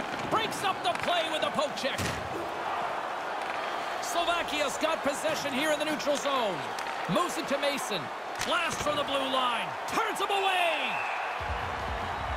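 A hockey stick strikes a puck with sharp clacks.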